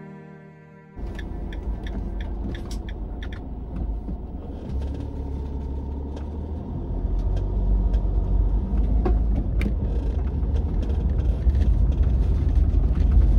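Tyres roll over a rough road surface.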